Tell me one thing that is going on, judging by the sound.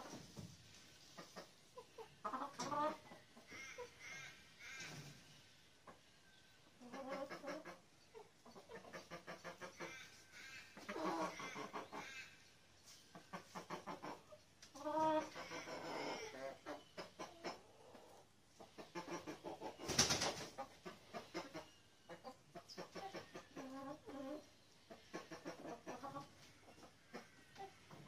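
Hens cluck and squawk nearby, in a space with a slight echo.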